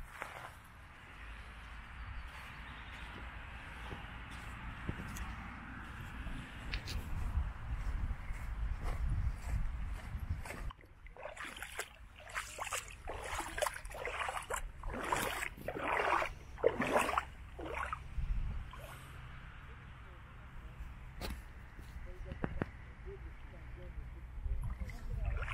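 Small waves lap gently against a stony shore.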